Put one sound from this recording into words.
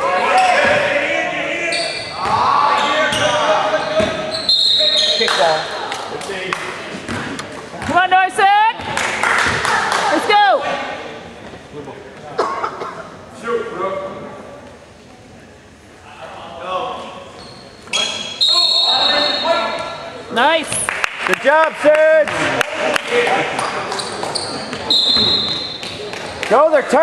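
Spectators nearby talk and call out in a large echoing gym.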